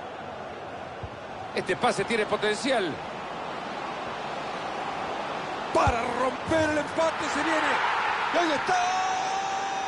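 A large crowd cheers and roars in a stadium, swelling louder.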